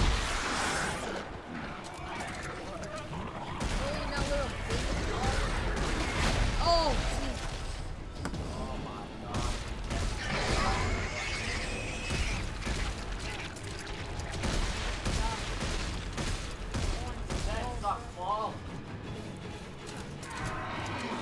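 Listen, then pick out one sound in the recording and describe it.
A creature roars and screeches.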